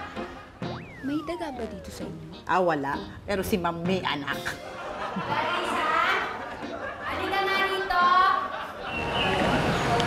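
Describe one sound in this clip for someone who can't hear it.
A young woman speaks with emotion.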